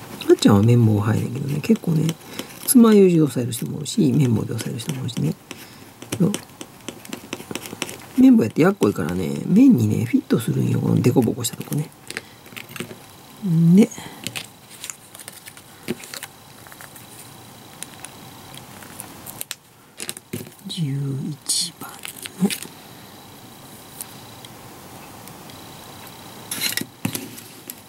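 Small plastic parts click and tap softly as they are handled.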